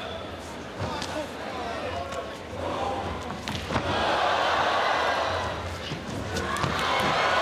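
Punches land on a body with dull thuds.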